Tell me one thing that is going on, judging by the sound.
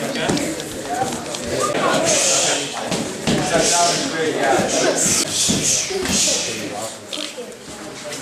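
Gloves and shins thump against padded strike shields.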